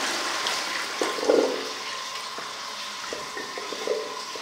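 Water gurgles and glugs down a drain.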